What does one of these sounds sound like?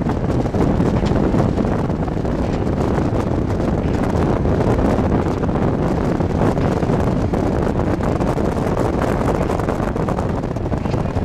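Traffic rumbles steadily on a nearby highway.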